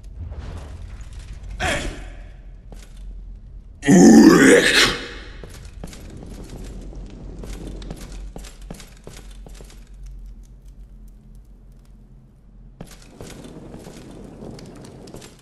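Heavy armoured footsteps thud and clank on stone.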